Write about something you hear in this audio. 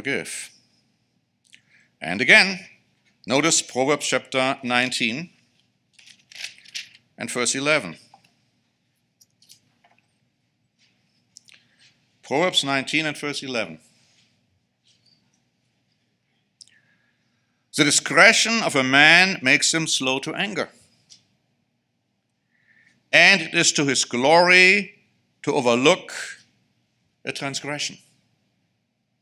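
A middle-aged man speaks calmly into a microphone, reading out in short phrases with pauses.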